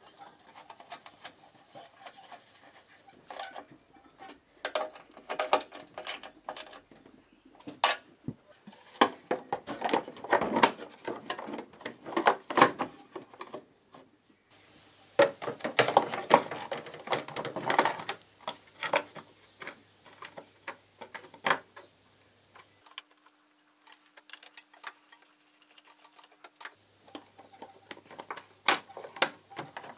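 Plastic and metal parts knock and clatter as a cover is handled.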